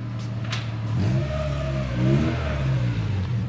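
A car engine revs up briefly.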